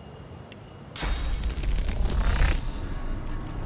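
Magical lightning crackles and bursts loudly.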